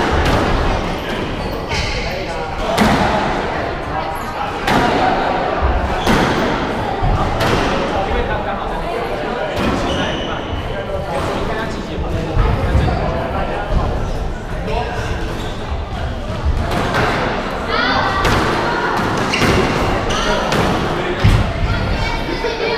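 A squash ball smacks sharply against the walls and rackets.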